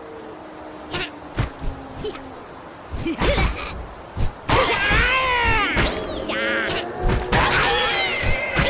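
Swords clash and strike in a quick fight.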